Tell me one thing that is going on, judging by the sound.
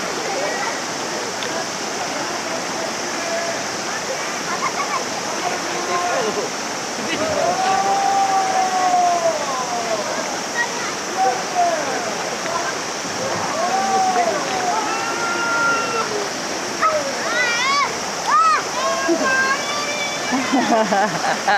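A river flows and ripples gently.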